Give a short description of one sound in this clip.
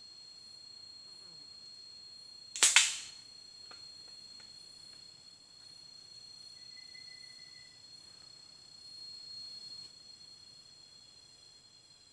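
Footsteps crunch on dry leaves as a person pushes through undergrowth.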